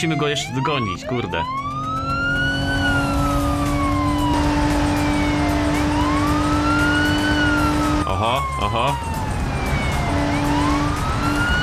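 A siren wails up and down, close by.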